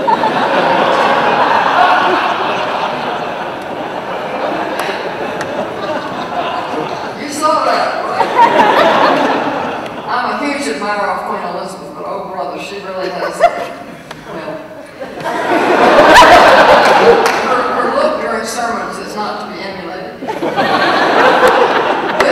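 An older woman laughs into a microphone.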